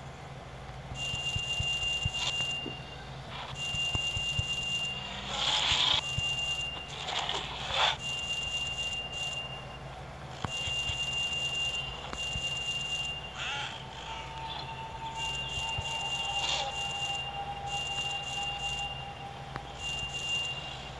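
Coins chime and jingle in quick bursts as game rewards are collected.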